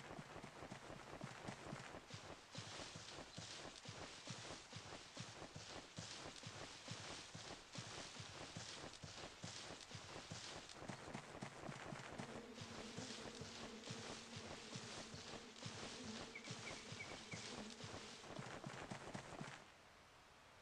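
Quick footsteps patter through grass.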